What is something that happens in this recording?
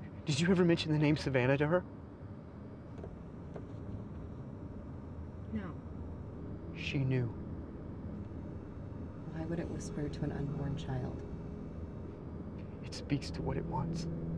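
A man speaks with animation inside a car.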